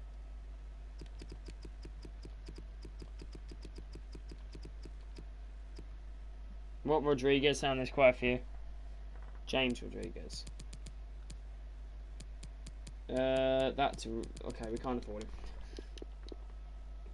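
Soft menu clicks tick quickly as a selection moves along.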